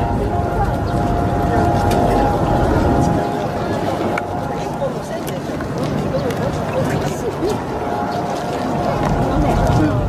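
A crowd murmurs at a distance outdoors.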